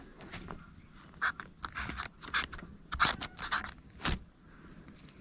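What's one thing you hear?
A stick scratches on paper.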